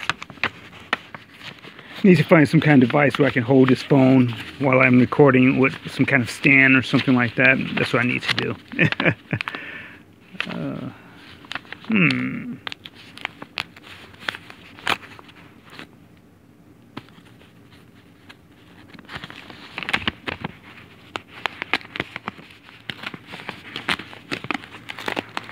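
A paper envelope rustles and crinkles.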